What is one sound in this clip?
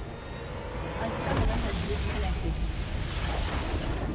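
A loud magical blast booms as a structure shatters.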